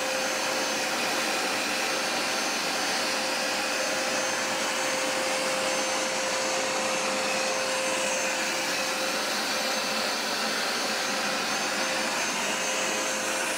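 Carpet cleaner brushes whir and scrub across carpet.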